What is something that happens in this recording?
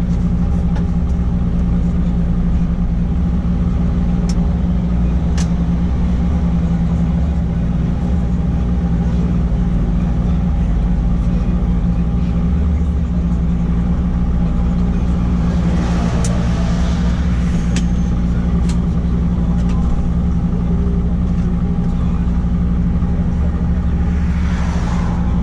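A truck's diesel engine drones steadily from inside the cab.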